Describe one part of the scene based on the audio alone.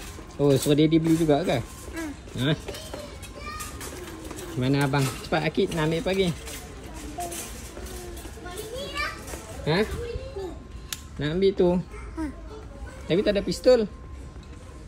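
A young child talks excitedly nearby.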